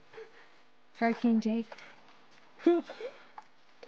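A young woman speaks calmly and teasingly.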